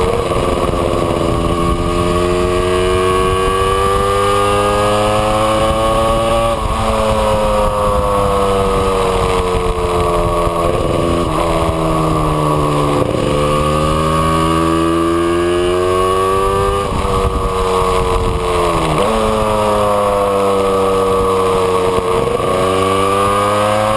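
Wind rushes past a motorcycle rider at speed.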